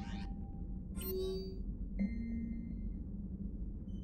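Electronic menu chimes play as a message opens.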